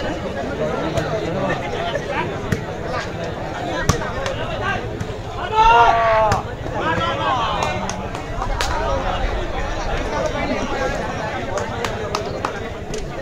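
A ball is struck with sharp thuds.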